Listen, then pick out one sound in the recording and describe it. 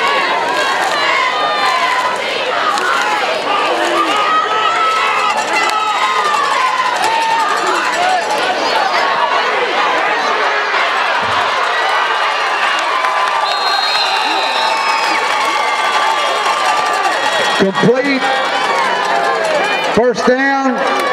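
A large crowd cheers and shouts loudly in an outdoor stadium.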